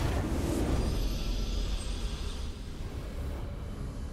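A triumphant victory fanfare plays in a video game.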